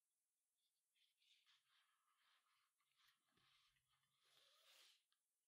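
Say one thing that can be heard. Cord rustles and scrapes as hands handle a braided rope ball.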